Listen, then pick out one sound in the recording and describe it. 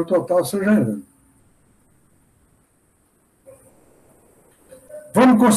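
An elderly man talks calmly over an online call, with pauses.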